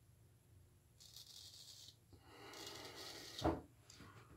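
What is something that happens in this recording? A straight razor scrapes through stubble in short strokes.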